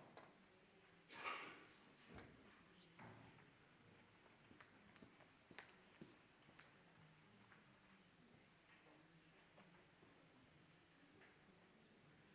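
Footsteps echo softly across a hard floor in a large room.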